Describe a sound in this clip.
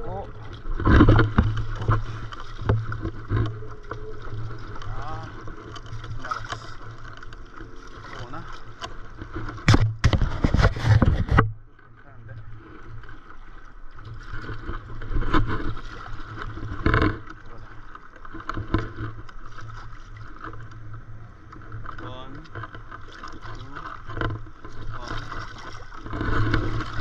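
Water laps and splashes against a paddleboard's nose.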